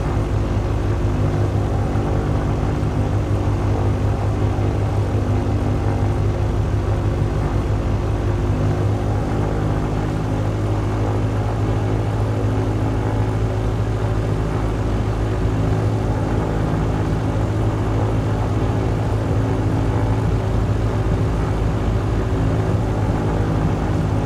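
A propeller engine drones steadily and loudly.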